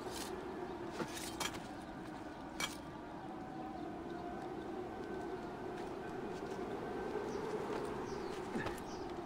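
Hands grip and scrape against stone in short knocks while climbing.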